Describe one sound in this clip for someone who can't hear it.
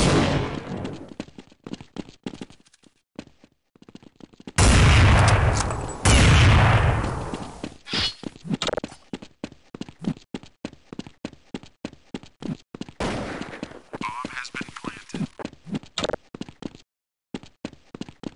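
Footsteps tap quickly and steadily on hard ground.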